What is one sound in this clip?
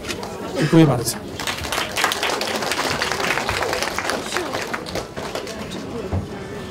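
A crowd applauds.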